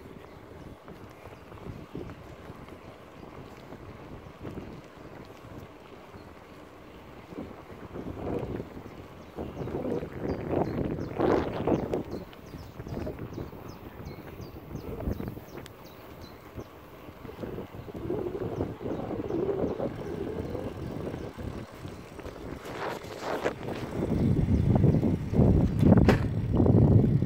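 Bicycle tyres roll steadily over a paved path.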